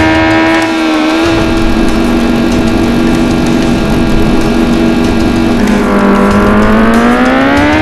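A motorcycle engine hums steadily and revs up.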